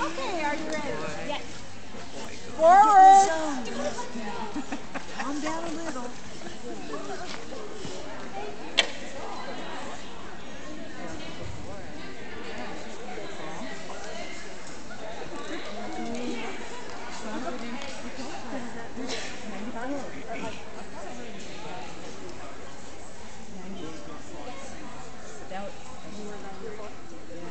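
People talk quietly in the background of a large echoing hall.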